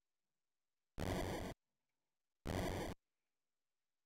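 Fireworks burst with a crackling boom.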